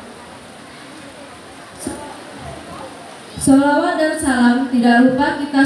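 A woman speaks into a microphone over a loudspeaker, in a sustained singing tone from partway through.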